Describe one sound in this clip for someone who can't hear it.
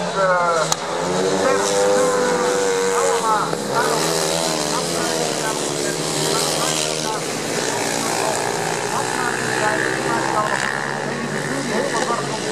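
Motorcycle engines roar and rev loudly as the bikes race past.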